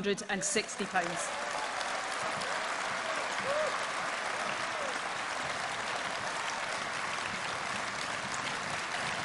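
A large crowd applauds steadily in a big echoing hall.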